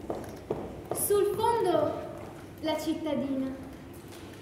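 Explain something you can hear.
A young woman speaks from a distance in an echoing hall.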